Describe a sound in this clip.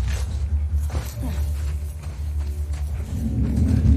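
Tall grass rustles as someone pushes through it.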